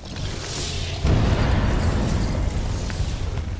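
A loud explosion bursts with a deep rumble.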